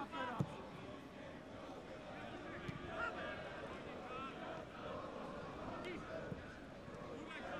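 A large crowd murmurs and chants in an open stadium.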